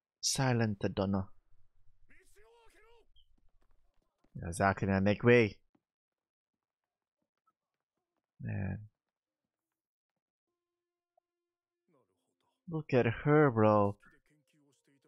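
A young man speaks calmly into a close microphone, in short bursts.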